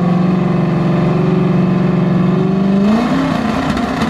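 A car engine rumbles loudly and revs up.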